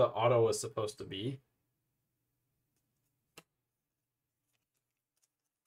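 Trading cards slide against each other.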